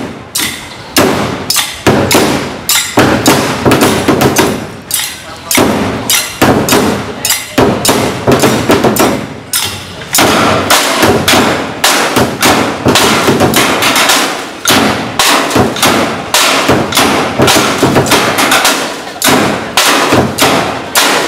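Drums are beaten hard in a loud, fast rhythm, outdoors.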